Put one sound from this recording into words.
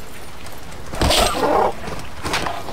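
A moose grunts loudly close by.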